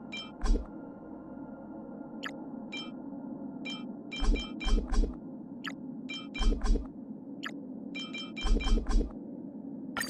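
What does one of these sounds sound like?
Game menu chimes and clicks sound repeatedly as items are selected.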